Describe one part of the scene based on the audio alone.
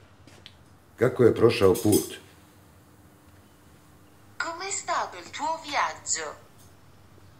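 An older man speaks calmly into a phone close by.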